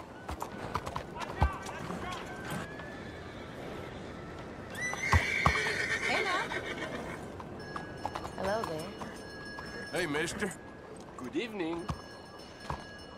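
A horse's hooves clop slowly on a cobbled street.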